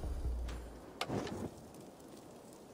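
A torch flame crackles and roars.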